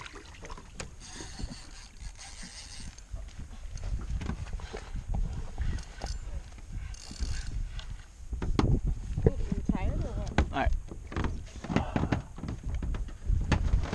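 Water laps and splashes against the side of a small boat.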